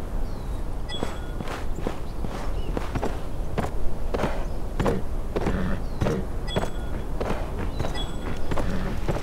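Horse hooves clop quickly on stone paving.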